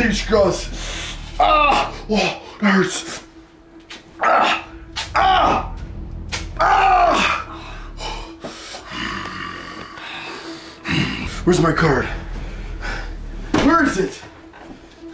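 A young man talks loudly and with animation close by.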